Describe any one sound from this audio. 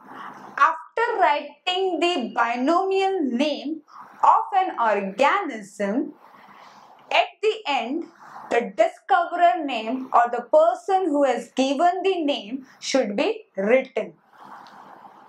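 A young woman speaks calmly and clearly into a microphone, as if teaching.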